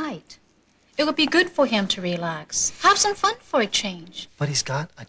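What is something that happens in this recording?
A woman speaks with concern, close by.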